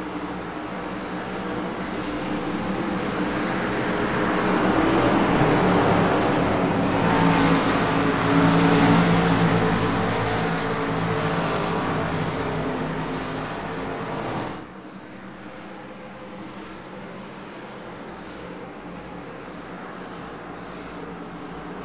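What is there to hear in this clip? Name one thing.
Many race car engines roar and drone together as a pack speeds around a track.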